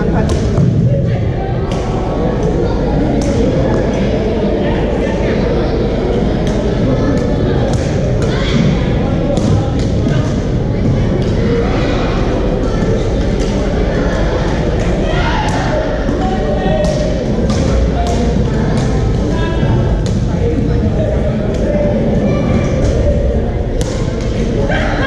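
Rackets hit shuttlecocks with sharp pops in a large echoing hall.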